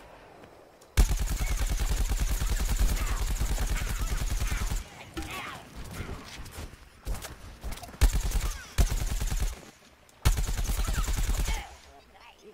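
A video game weapon fires.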